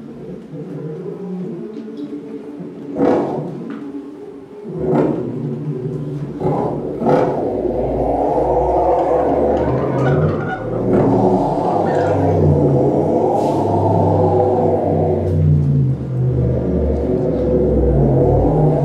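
Electronic music plays through loudspeakers in a room.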